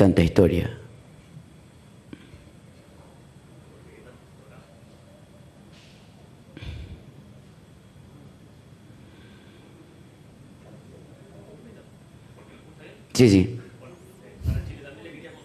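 A middle-aged man speaks calmly into a microphone, in short bursts between long pauses.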